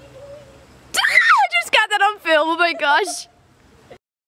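A young woman shouts excitedly nearby.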